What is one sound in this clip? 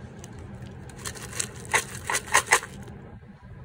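A can's lid pops open with a few sharp clicks.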